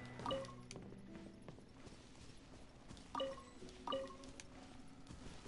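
A short bright chime rings out several times.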